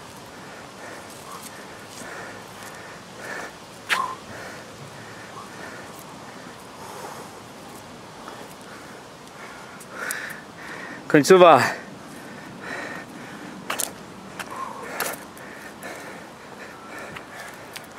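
Sneakers step slowly and heavily on a concrete path.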